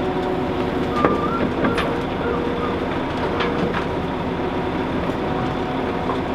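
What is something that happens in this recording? Earth and stones tumble from an excavator bucket into a dump truck's bed with thuds and clatter.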